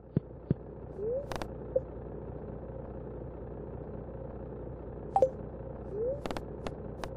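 Short rising blips sound as a menu opens.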